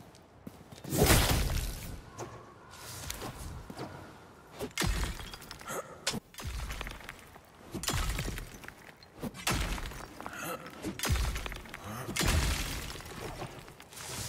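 A pickaxe strikes rock again and again, with sharp ringing clinks.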